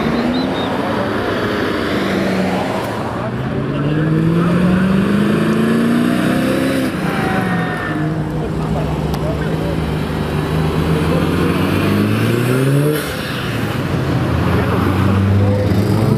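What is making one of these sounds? A car engine accelerates hard, rising through the gears.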